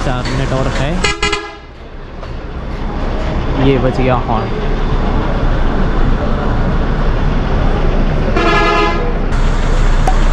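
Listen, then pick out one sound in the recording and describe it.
A bus horn blares loudly twice.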